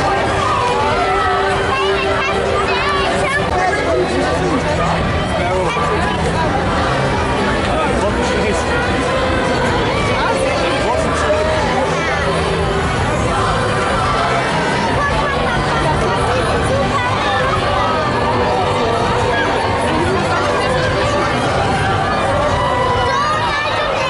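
A large crowd of men, women and children chatters and calls out outdoors.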